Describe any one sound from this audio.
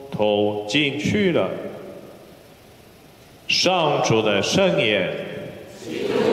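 A man chants through a microphone in an echoing hall.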